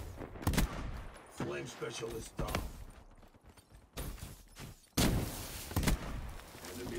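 A shotgun fires.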